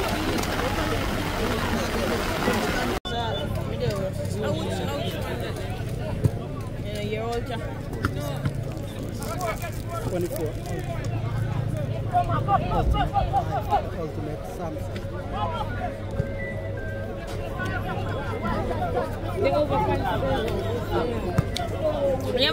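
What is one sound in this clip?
Young men shout to each other outdoors across an open field.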